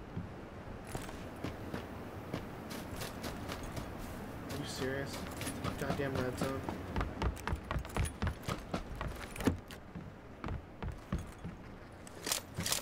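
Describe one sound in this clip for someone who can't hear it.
Footsteps thud quickly on dirt and floorboards.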